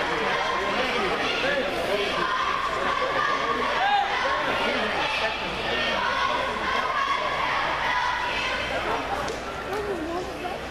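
A crowd of young people chatters loudly in a large echoing hall.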